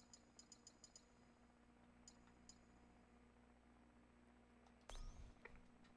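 Menu sounds click and beep.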